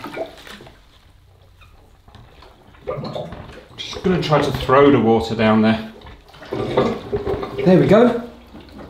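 Water sloshes in a toilet bowl as a hand works in it.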